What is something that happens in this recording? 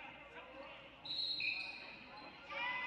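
A referee's whistle blows in short sharp blasts.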